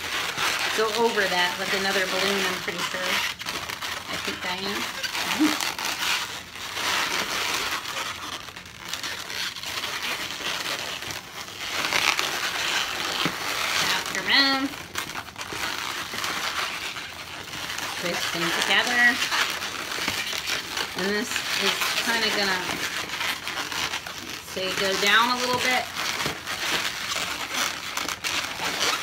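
Balloons rub and squeal against each other.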